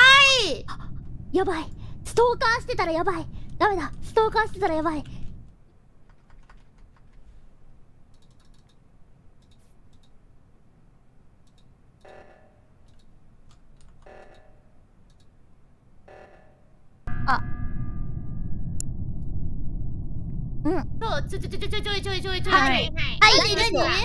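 A young woman speaks excitedly into a microphone in a high voice.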